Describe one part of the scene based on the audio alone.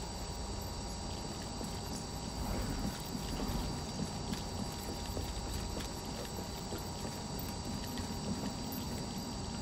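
Footsteps thud softly.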